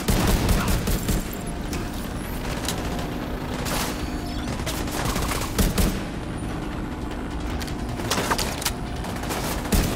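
Gunfire crackles in sharp bursts.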